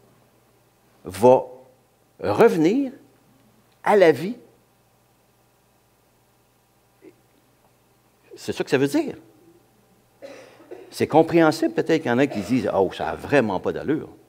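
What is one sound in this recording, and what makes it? An elderly man speaks with animation through a microphone, in short bursts with pauses.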